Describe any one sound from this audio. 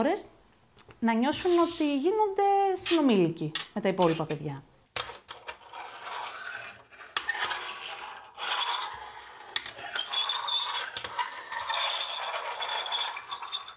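Plastic pens knock and clatter onto a hard table.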